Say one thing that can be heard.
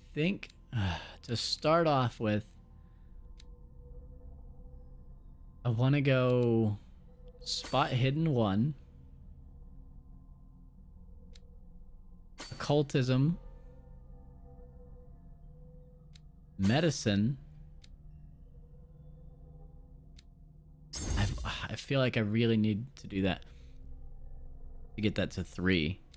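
A young man talks into a close microphone in short bursts, with pauses between.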